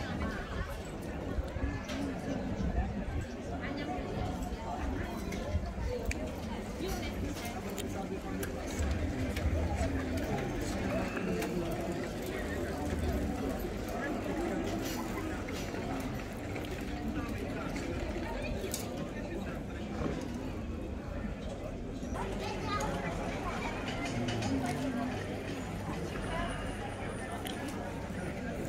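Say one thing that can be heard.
A crowd of people chat outdoors.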